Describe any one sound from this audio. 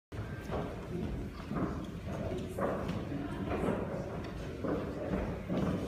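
Footsteps thud on wooden steps in a large echoing hall.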